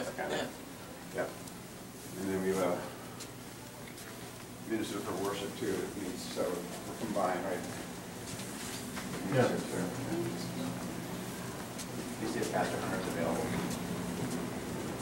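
A young man talks nearby.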